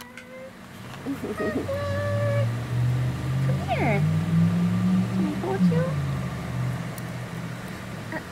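A woman talks in a high, playful voice to a baby.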